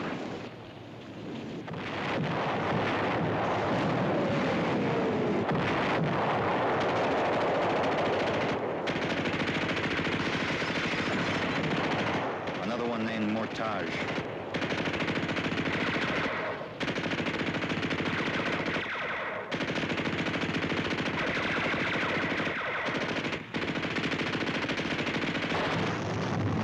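Gunfire and explosions rumble and crack continuously.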